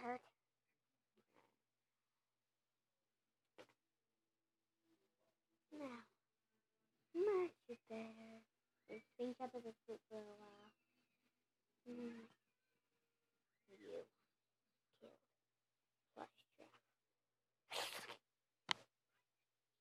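A child speaks playfully and close by, in short bursts.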